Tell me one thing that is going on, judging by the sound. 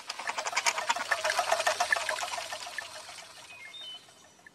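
A small toy train rattles and clatters along.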